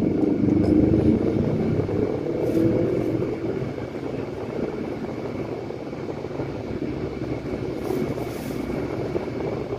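Motorcycle engines buzz nearby.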